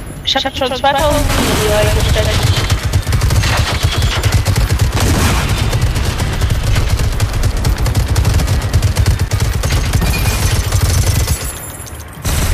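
Gunfire rattles and booms in rapid bursts.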